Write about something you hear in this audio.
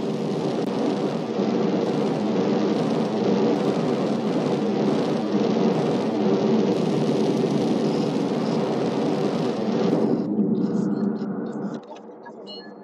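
A jetpack engine roars loudly and steadily.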